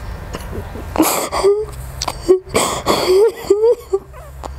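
A young woman sobs and wails close by.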